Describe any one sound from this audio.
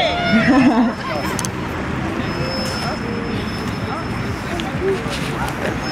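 A crowd of young people chatter softly in the open air.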